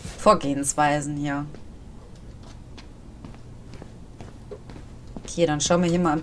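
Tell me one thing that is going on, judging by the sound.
Footsteps fall softly on a hard floor.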